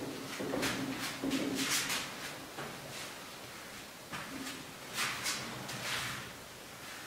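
A marker squeaks and scratches across a whiteboard.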